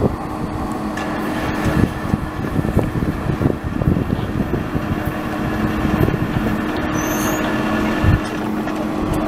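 Train wheels squeal steadily on the rails.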